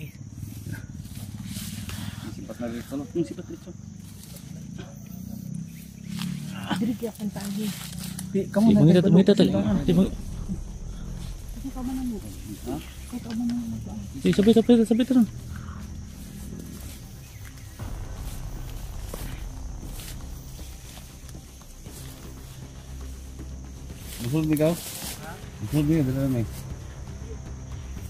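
Footsteps rustle through dense leafy undergrowth.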